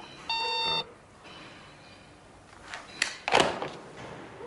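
A telephone receiver is set down with a clack.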